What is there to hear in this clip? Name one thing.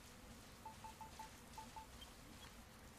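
Soft electronic menu beeps tick in quick succession.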